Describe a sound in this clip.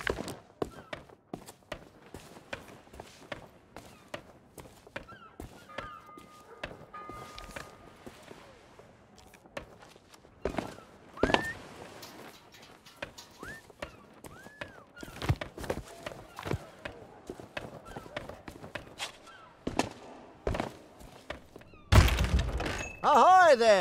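Footsteps tap on a stone street.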